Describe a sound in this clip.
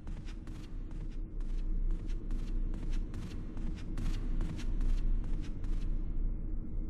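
Footsteps thud steadily on a wooden floor in a large echoing hall.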